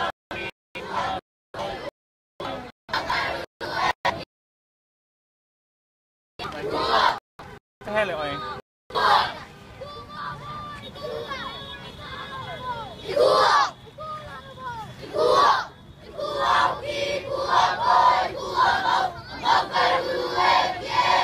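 A crowd of children and adults chatters and calls out outdoors.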